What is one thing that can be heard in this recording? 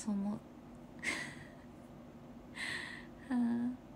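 A young woman laughs briefly.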